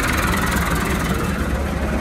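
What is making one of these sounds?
A diesel tractor drives past close by.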